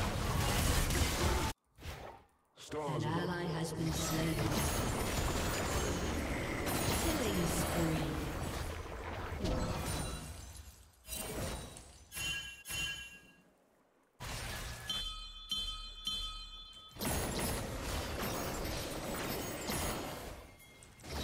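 Game sound effects of spells and clashes play.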